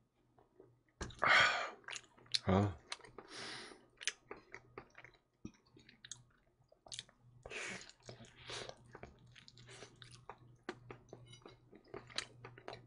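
A man chews food noisily close to a microphone, with wet smacking and crunching.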